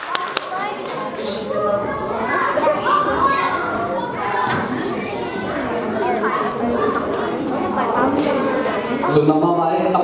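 Young children chatter and talk over each other.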